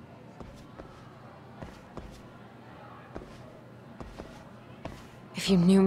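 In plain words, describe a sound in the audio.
Footsteps click on a hard floor in an echoing hallway.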